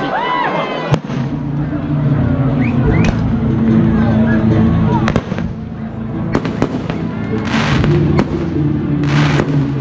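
Fireworks boom and crackle overhead.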